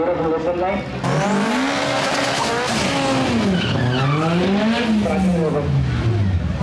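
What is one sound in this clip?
A car engine revs up and down loudly nearby.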